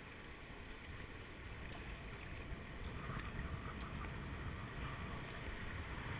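A kayak paddle splashes in the water.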